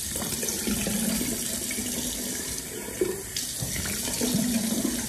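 Tap water runs and splashes steadily into a sink.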